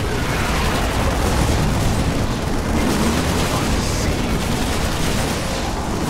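Rapid gunfire rattles in a loud battle.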